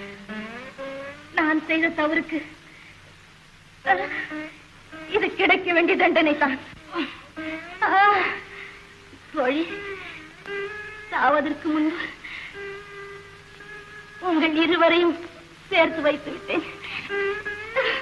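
An older woman speaks anxiously, close by.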